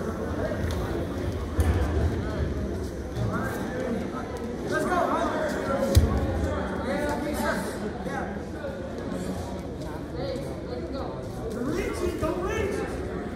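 A man close by shouts encouragement.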